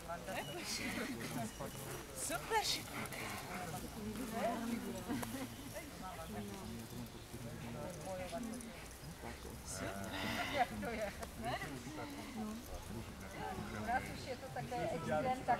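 A woman calls out with animation outdoors.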